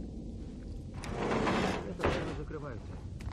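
A heavy metal grate is pulled loose with a scraping clatter.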